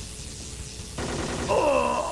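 Gunshots fire in a burst.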